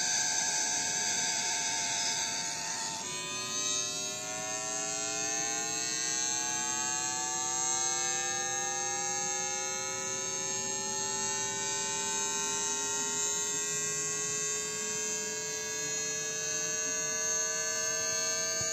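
An electric train's motor whines, rising slowly and steadily in pitch.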